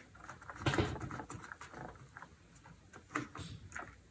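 Small plastic pieces click against a metal rail.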